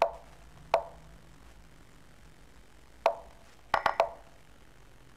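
Short, sharp wooden clicks sound as chess pieces are moved in an online game.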